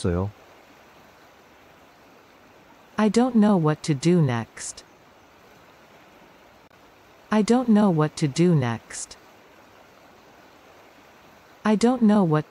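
A river rushes and gurgles steadily.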